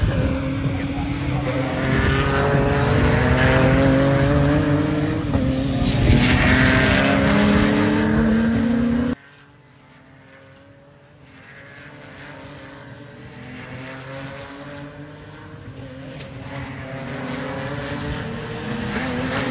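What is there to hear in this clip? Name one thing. Racing car engines roar loudly past, their pitch rising and falling as they change gear.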